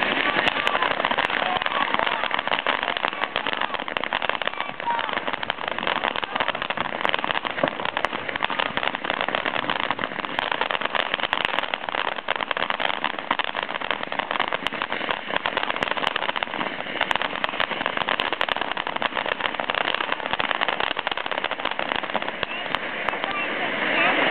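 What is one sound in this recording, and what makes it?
Sparks from a firework crackle and pop rapidly.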